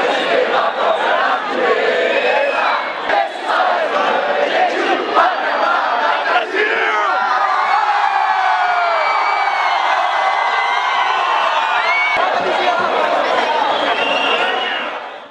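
A large crowd chants and shouts loudly outdoors.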